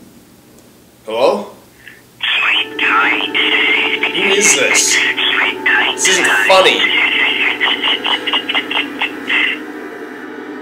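A young man talks on a phone, close by.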